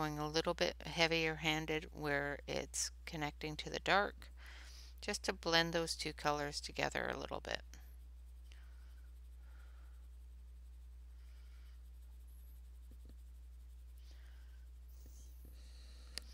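A colored pencil scratches softly across paper.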